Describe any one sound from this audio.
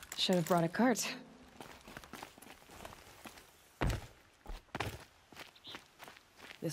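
Footsteps crunch on dirt and rock.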